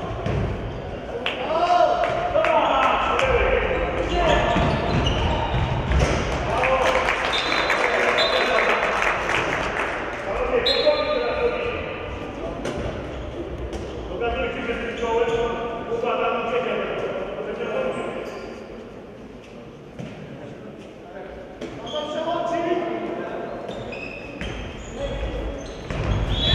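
Sports shoes squeak on a hard floor in a large echoing hall.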